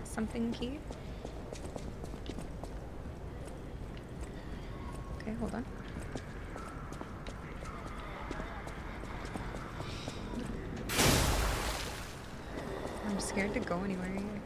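Footsteps run across hard ground.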